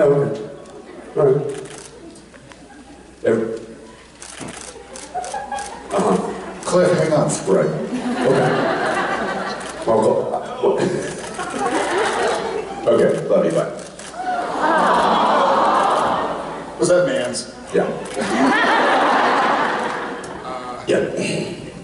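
A second man answers through a microphone.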